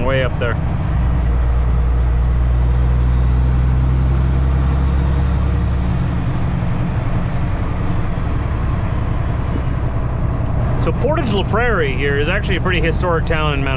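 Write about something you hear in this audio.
A truck's diesel engine drones low and steady.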